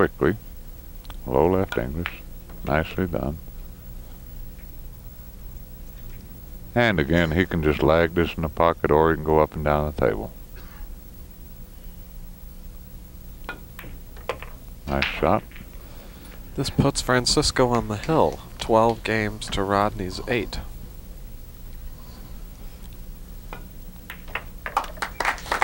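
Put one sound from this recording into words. A cue tip strikes a billiard ball with a sharp click.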